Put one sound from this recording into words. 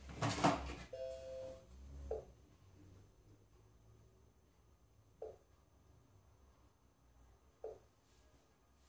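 A kitchen machine beeps briefly as its buttons are pressed.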